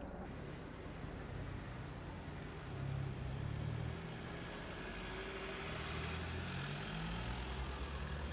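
Cars pass slowly on a road.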